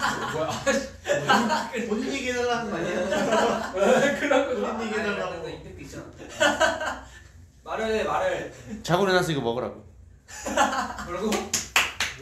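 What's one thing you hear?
Young men laugh loudly together.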